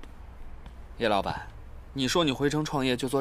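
A young man speaks calmly and up close.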